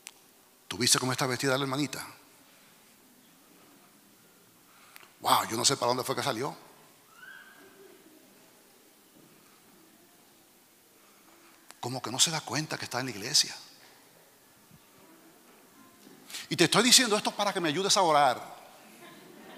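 A middle-aged man speaks with animation into a microphone, heard over loudspeakers in a large hall.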